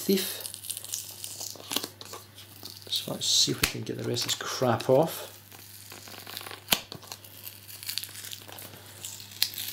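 Fingers peel a thin plastic film, crinkling and rustling.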